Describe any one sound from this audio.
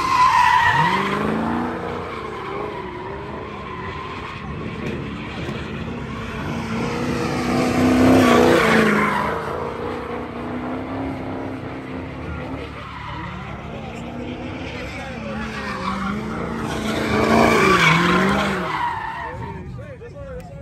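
A car engine revs loudly and roars up and down.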